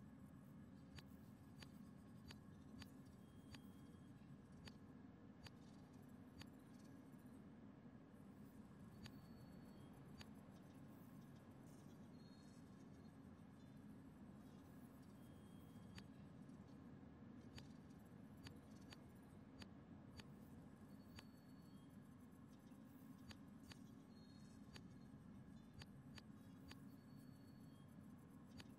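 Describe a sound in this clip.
Game menu clicks tick as settings are changed.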